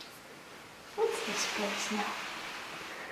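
A woman speaks softly to a cat nearby.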